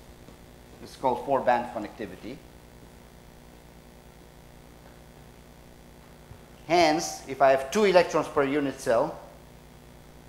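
A man speaks calmly into a microphone, pausing between phrases.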